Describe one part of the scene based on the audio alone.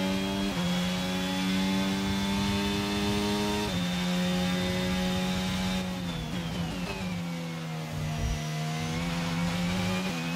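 A racing car engine screams at high revs, shifting gears, then drops in pitch as the car brakes for a corner.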